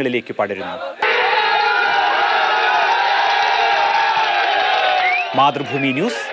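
A crowd of men chant slogans loudly together.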